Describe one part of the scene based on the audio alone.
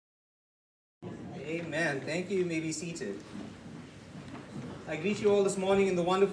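A man speaks with feeling through a microphone in a large echoing hall.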